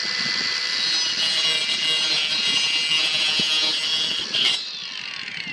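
A saw blade cuts through a plastic pipe.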